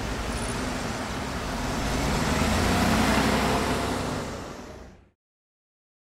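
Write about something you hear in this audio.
A car engine hums and rises as the car pulls away.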